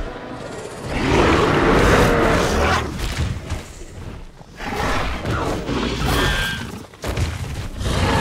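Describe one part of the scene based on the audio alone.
A large dinosaur roars.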